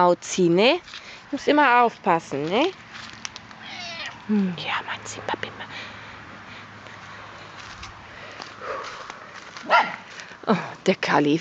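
A cat meows loudly and repeatedly close by.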